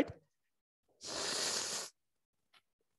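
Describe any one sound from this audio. A man spits water out with a rushing hiss.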